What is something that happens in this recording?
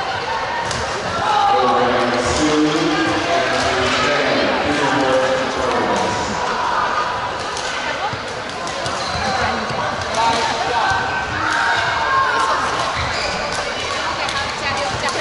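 A crowd of children and adults chatters throughout, with echo.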